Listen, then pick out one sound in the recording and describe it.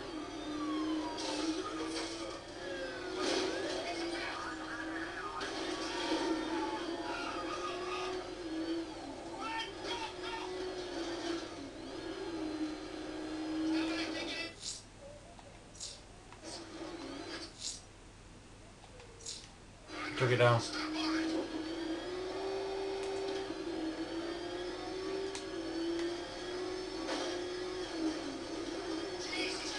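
A vehicle engine roars steadily in a game, its pitch rising and falling.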